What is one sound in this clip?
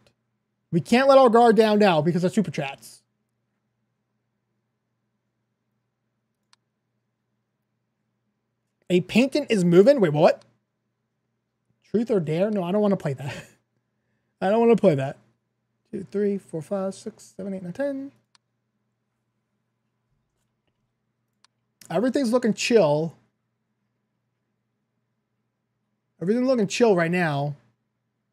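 A man talks with animation, close to a microphone, in short bursts.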